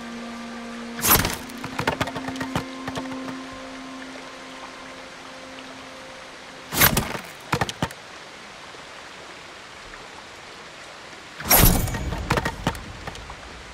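A sword swishes and slices through bamboo stalks with sharp cracks.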